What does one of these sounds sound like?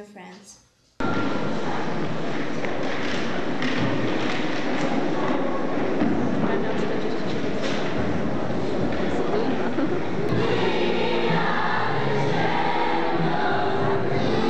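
A crowd of children cheers and shouts in a large echoing hall.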